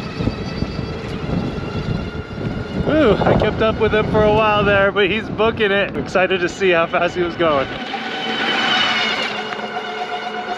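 An electric motorbike whines steadily as it rides.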